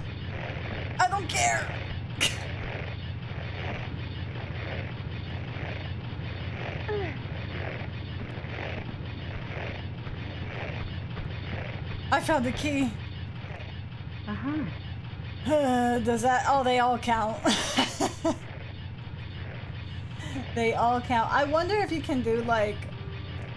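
A young woman talks and laughs with animation into a nearby microphone.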